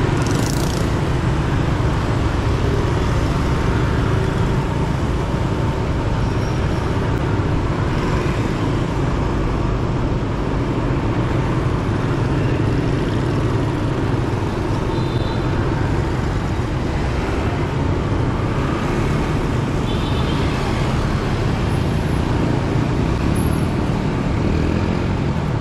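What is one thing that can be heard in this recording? Wind rumbles loudly past a moving motorbike.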